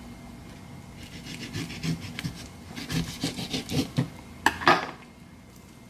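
A knife scrapes and taps against an avocado's hard skin.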